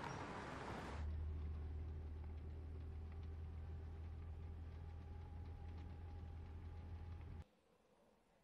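A car engine hums low.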